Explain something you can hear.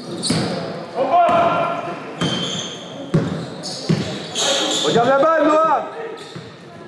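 Sneakers squeak sharply on a gym court.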